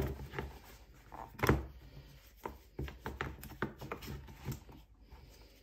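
Cardboard puzzle blocks knock and click as hands turn them over.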